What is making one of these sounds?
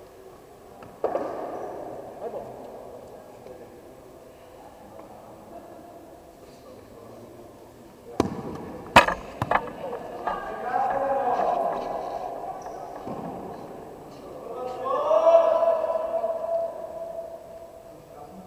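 Young players call out to each other in an echoing hall.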